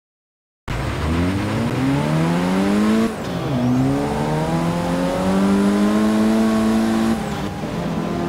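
A racing car engine revs hard, rising in pitch as it shifts gears.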